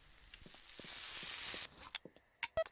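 A meat patty sizzles on a hot grill.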